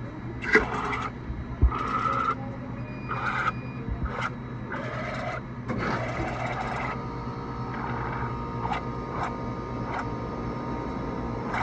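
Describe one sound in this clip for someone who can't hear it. A slush machine hums steadily.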